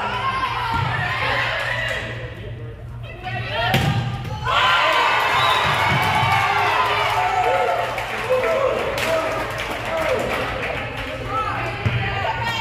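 Young women shout and call to each other in a large echoing gym.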